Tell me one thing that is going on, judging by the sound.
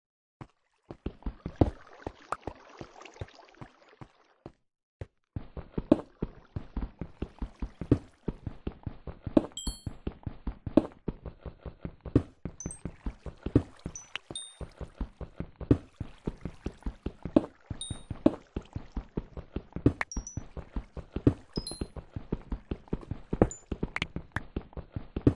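A pickaxe chips at stone in quick, repeated knocks.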